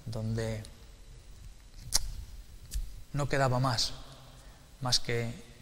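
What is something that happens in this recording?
A middle-aged man speaks calmly and haltingly into a nearby microphone.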